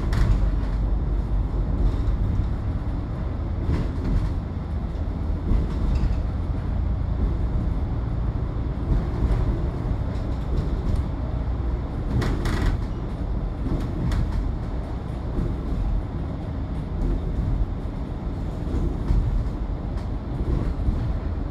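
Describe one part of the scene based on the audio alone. A bus engine rumbles steadily as it drives along a highway.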